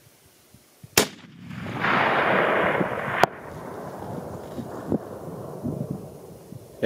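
A rifle shot cracks loudly and echoes across open hills.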